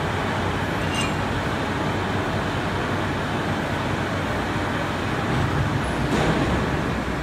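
Metal parts clink briefly as they are handled.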